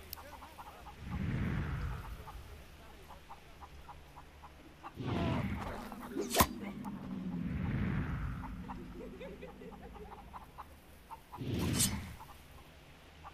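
A thrown knife whooshes through the air.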